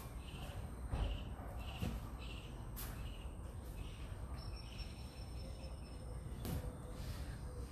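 A rubber exercise ball thumps on a hard floor.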